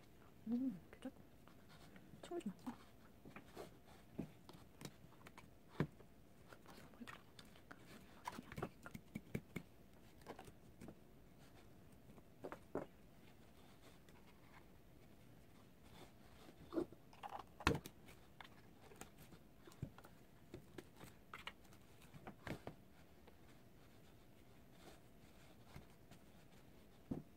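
Hands rustle and handle a doll's hair close by.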